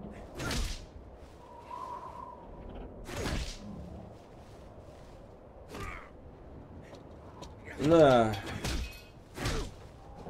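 Heavy blows and swishes strike during a scuffle.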